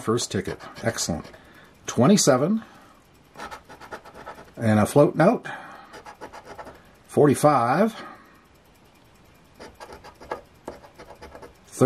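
A coin scrapes across a scratch card in quick, rough strokes.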